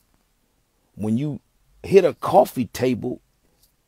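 A young man speaks close by in short bursts.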